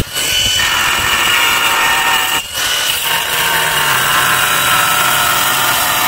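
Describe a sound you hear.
An angle grinder whines loudly as it cuts through a stone tile.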